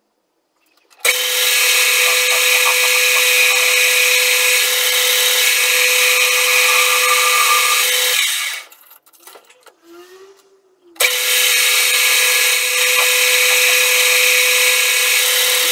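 A metal lathe whirs with a steady high hum, stopping and then starting again.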